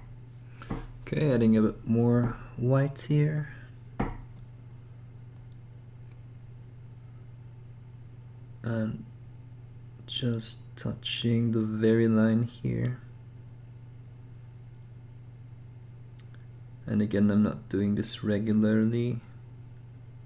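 A man talks calmly and close into a microphone, in short bursts with pauses.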